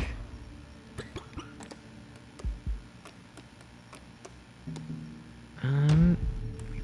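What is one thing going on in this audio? Short soft clicks tick one after another as menu options change.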